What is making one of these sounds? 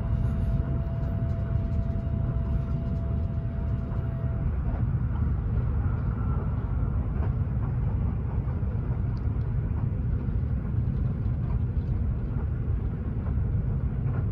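Train wheels clatter on the rails.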